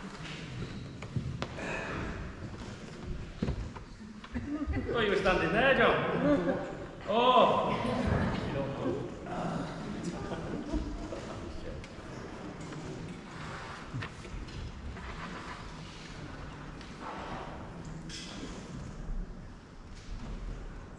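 A man speaks to an audience in a large echoing hall.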